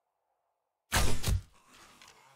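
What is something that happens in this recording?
A crossbow fires a bolt.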